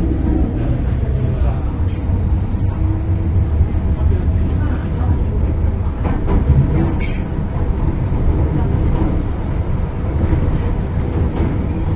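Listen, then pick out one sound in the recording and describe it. A train rumbles and rattles steadily along the tracks, heard from inside a carriage.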